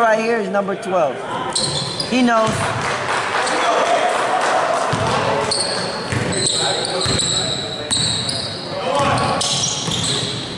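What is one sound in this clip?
Young men shout across a large echoing gym.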